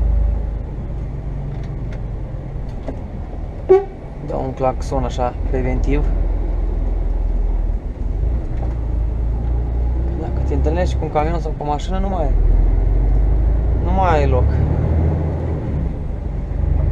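A truck engine rumbles low and steady from inside the cab as it drives slowly.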